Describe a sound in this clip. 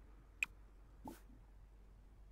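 A soft game interface pop sounds as a menu opens.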